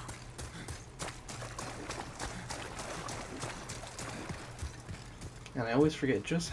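Armoured footsteps thud quickly on wet ground.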